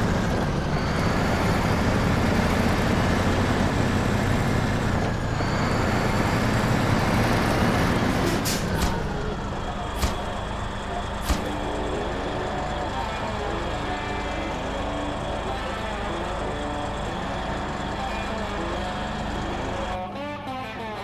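A heavy truck engine roars loudly, then settles to a lower rumble.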